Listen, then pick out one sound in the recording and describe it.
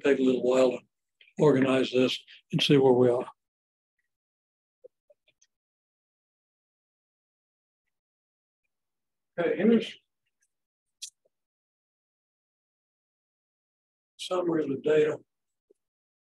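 A man lectures calmly, close by, in short bursts with pauses.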